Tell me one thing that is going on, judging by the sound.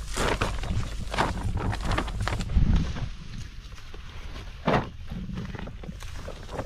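A plastic sack rustles.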